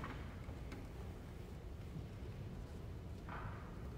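Footsteps shuffle softly across the floor.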